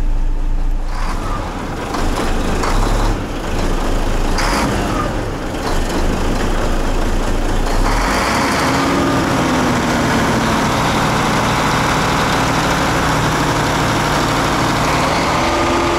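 An engine roars loudly close by with a rushing noise.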